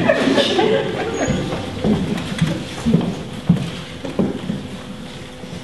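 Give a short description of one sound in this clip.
A man speaks loudly on a stage in a large echoing hall.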